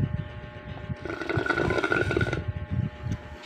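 A man slurps a drink loudly through a straw, close by.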